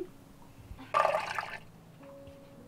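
Dry powder pours and hisses into a plastic funnel.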